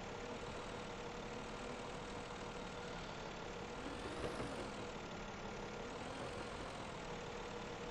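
A heavy diesel engine rumbles steadily.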